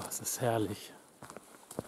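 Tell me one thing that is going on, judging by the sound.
An elderly man speaks briefly and calmly, close by.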